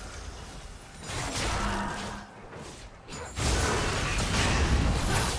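Magical blasts and sword hits of a video game fight crackle and whoosh.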